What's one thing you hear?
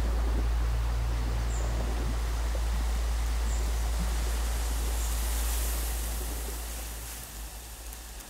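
Wind rumbles loudly across the microphone, outdoors, then dies away.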